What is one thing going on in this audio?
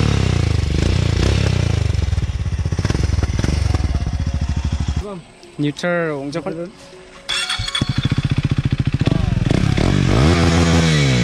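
A motorcycle engine idles close by with a rapid, throbbing chug.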